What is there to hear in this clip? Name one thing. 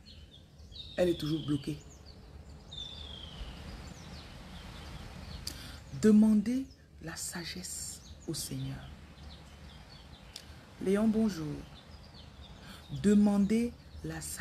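A woman speaks calmly close to the microphone, in short phrases with pauses.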